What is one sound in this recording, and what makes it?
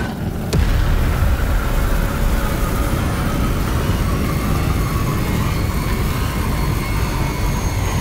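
Rocket engines roar with a deep, steady rumble.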